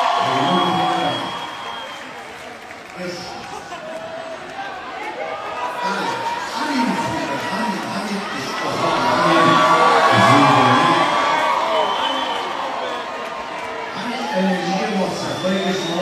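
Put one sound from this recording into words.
A singer sings through loudspeakers in a large echoing hall.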